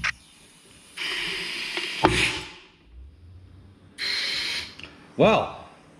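A heat gun blows with a steady hiss in short bursts.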